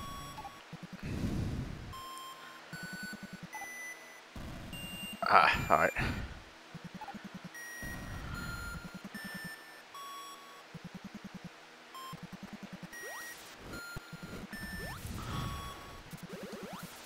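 Electronic game sounds beep and blip in quick bursts.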